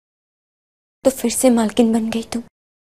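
An older woman speaks sternly close by.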